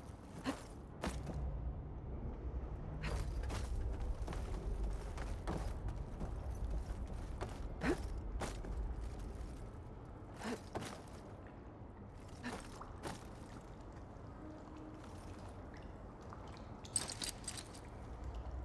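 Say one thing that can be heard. Footsteps and climbing grips knock on rock.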